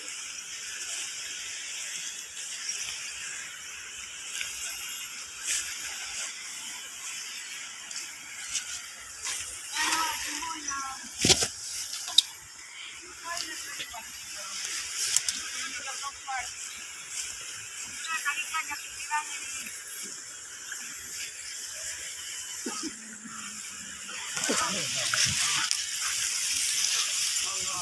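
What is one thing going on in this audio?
Footsteps rustle through grass and leaves.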